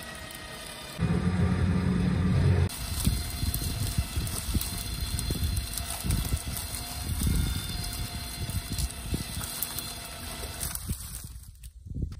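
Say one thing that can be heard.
An electric winch whirs as it pulls.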